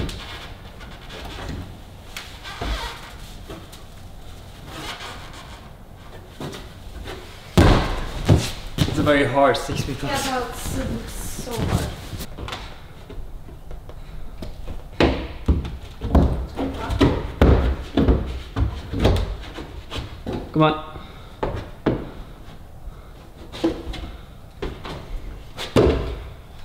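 A climber's hands and shoes thud and scrape against climbing holds.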